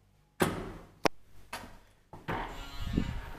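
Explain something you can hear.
A lift door clicks open.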